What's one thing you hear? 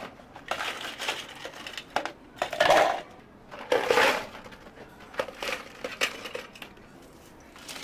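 Ice cubes clatter and rattle as they are tipped into plastic cups.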